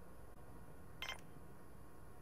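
A soft menu click sounds once.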